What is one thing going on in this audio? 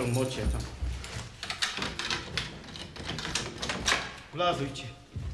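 Keys rattle in a door lock.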